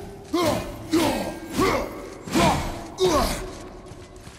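A man grunts and strains with effort.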